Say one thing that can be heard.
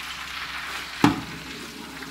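A metal ladle clinks against the side of a pot.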